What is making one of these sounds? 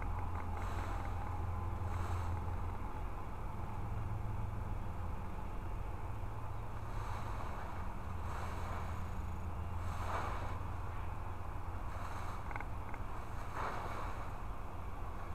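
Wind blows steadily outdoors, rumbling low.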